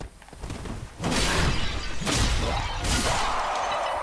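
Blades swing and strike in a fight.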